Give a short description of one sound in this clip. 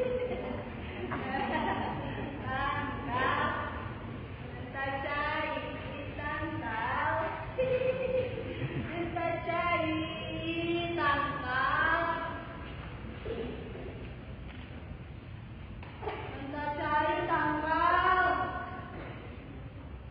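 A group of young performers sing in an echoing hall.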